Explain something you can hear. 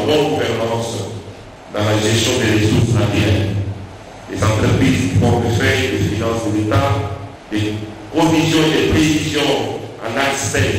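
A man speaks calmly into a microphone, heard through loudspeakers in a room.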